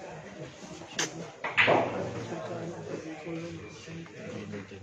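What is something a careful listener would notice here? Pool balls knock together and roll.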